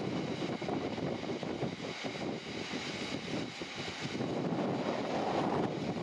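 Freight wagons rumble and clatter steadily along the rails close by.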